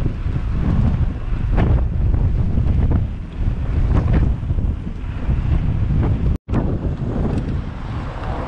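Wind buffets and rumbles loudly against a microphone on a moving bicycle.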